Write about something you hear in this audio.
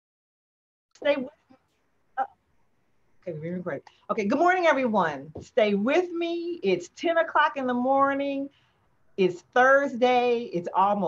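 A woman speaks warmly and with animation over an online call.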